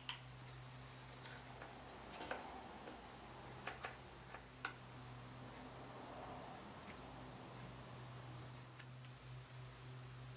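Metal spring clamps click and tap against wood.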